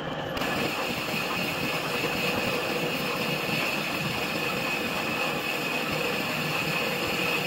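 A metal lathe runs with its chuck spinning.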